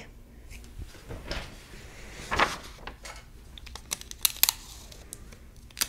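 Paper rustles and flips as photographs are handled.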